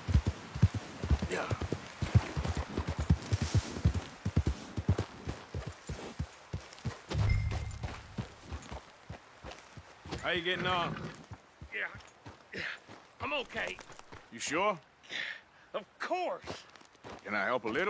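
A horse's hooves thud steadily on soft ground.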